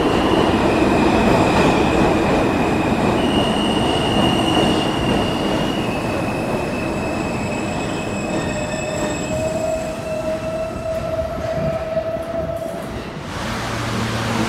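A subway train rolls into an echoing underground station and slows to a stop.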